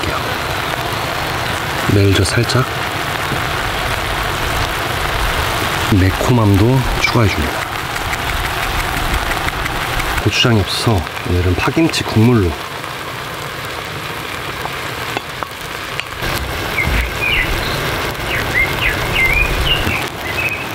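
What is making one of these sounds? A stew bubbles and simmers steadily.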